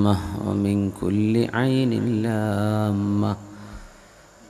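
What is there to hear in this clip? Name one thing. A man speaks with animation into a microphone, his voice loud through loudspeakers.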